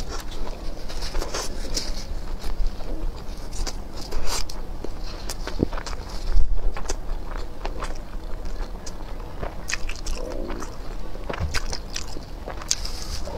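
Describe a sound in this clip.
A young woman chews food wetly and smacks her lips close to a microphone.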